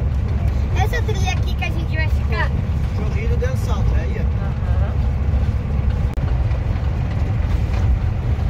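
A vehicle rumbles steadily along a gravel road.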